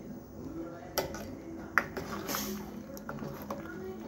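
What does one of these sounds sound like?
A metal ladle clinks against a pot while stirring.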